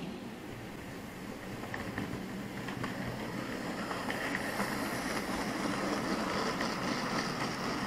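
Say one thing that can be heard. A model locomotive rumbles closer and passes nearby.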